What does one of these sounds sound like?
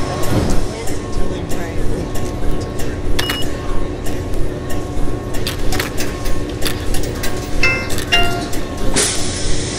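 A diesel city bus engine idles.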